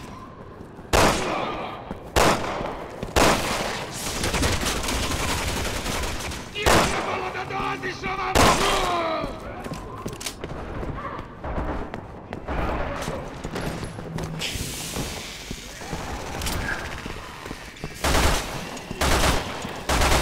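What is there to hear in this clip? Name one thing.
Gunshots crack loudly, one at a time.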